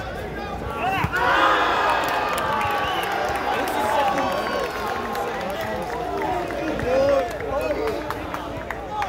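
A crowd of young people cheers and shouts outdoors.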